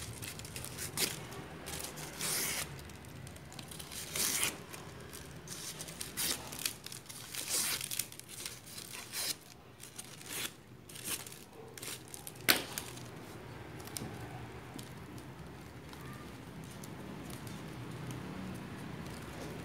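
Hands rustle and crinkle foam craft leaves.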